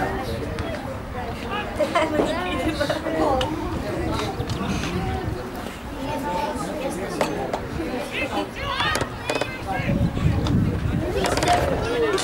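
Young men shout and call out to each other in the distance across an open field.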